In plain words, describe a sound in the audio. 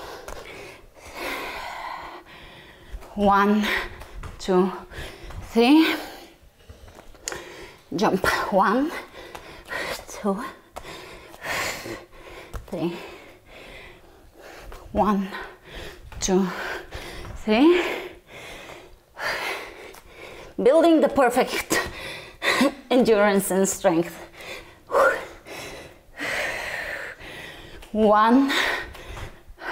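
A young woman speaks with energy.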